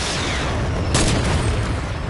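A rifle fires with a sharp, loud crack.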